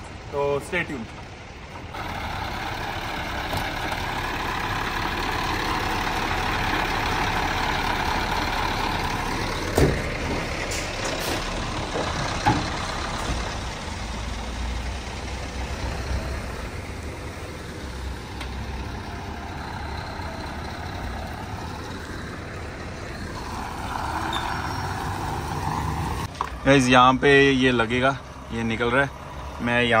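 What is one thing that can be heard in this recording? A truck door thuds shut.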